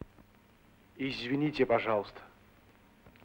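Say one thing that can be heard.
A middle-aged man speaks briefly and earnestly, close by.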